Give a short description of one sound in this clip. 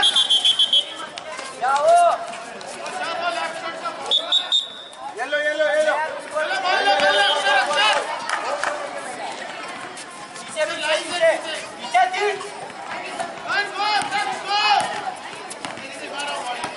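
Children and young spectators shout and cheer outdoors.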